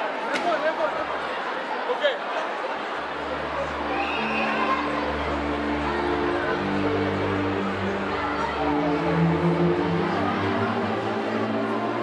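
A large crowd of young people cheers and chatters in a big echoing hall.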